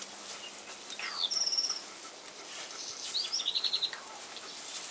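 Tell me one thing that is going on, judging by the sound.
Puppies whimper and squeal in high-pitched bursts.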